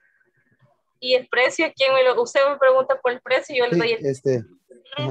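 A middle-aged woman reads aloud over an online call.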